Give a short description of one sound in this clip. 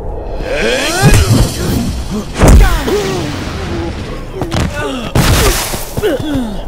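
Heavy blows thud as two men fight.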